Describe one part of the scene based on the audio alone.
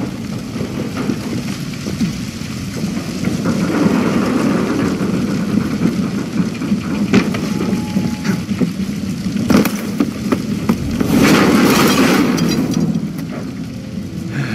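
Fire roars and crackles.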